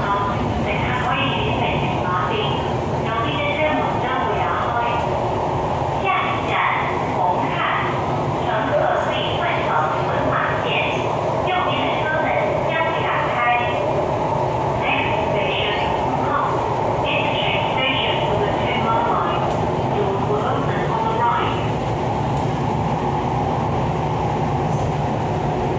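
An electric train rumbles along the track, heard from inside a carriage.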